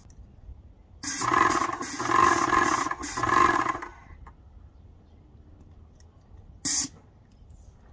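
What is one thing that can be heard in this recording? A paint sprayer hisses in loud bursts.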